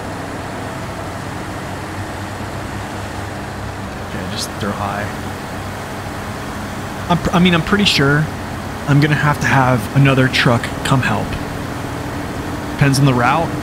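A heavy truck engine rumbles steadily while driving over rough ground.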